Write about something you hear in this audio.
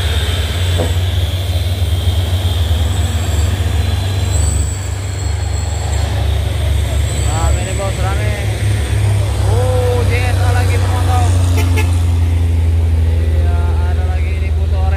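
Heavy truck engines rumble as the trucks drive past.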